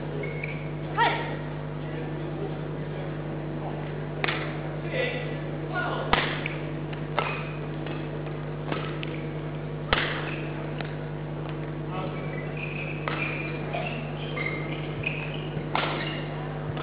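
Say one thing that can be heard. Badminton rackets strike a shuttlecock with sharp pops in an echoing hall.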